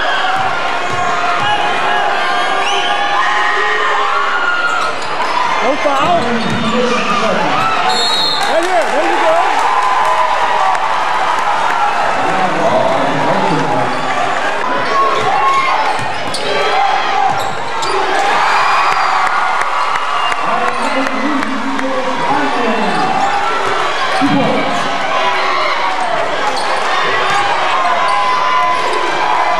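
A large indoor crowd cheers and shouts, echoing in a big hall.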